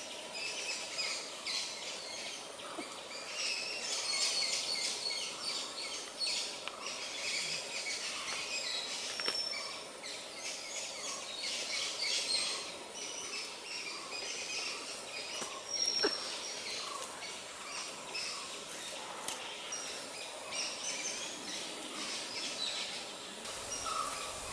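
Leaves and branches rustle close by.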